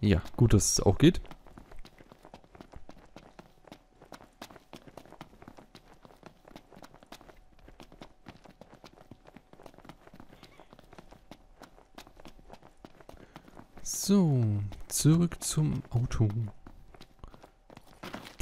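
Quick footsteps run over gravel and rubble.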